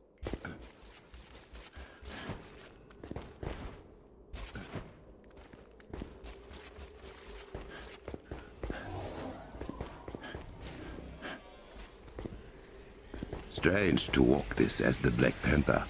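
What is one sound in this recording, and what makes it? Footsteps run over stone floors.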